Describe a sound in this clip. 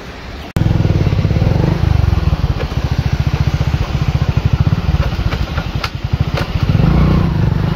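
A tractor engine chugs steadily.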